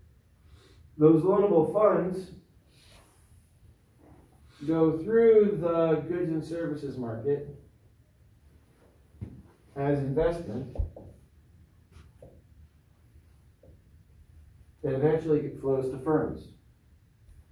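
A man speaks calmly in short phrases, close by, slightly muffled.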